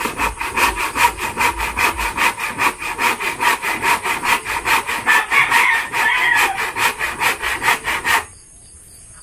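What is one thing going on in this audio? Wood is scraped rapidly back and forth in a steady rhythm.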